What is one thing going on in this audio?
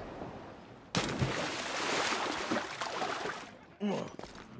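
Water splashes loudly as a body plunges into the sea.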